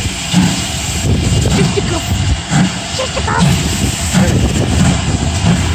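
A steam locomotive chuffs rhythmically as it pulls slowly away.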